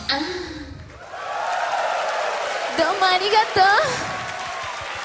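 A woman sings through a microphone in a large hall.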